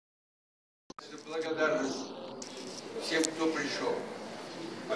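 An elderly man speaks calmly to a small gathering.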